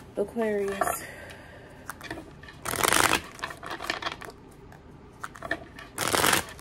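Cards tap and click softly as they are squared in the hands.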